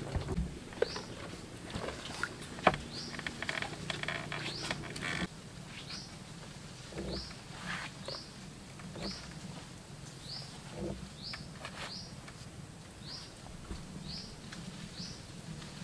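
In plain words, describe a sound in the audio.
Wooden poles knock and creak underfoot.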